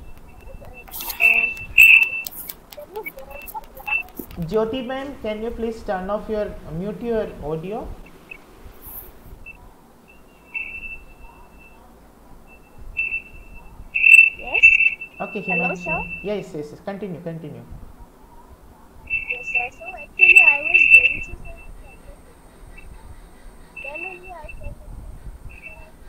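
A man talks calmly into a microphone on an online call.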